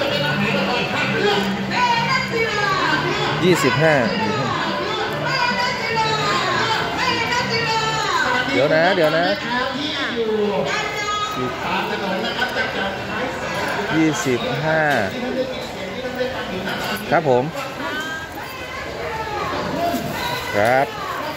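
Several adults talk and chatter close by.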